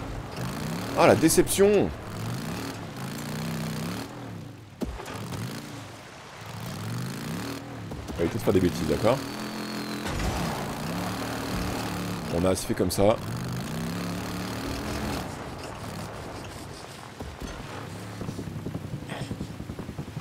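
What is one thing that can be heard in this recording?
A motorbike engine hums and revs steadily.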